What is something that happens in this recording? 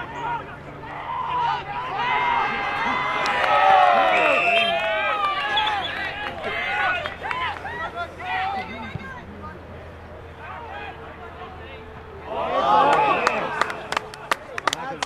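A crowd of spectators cheers and yells.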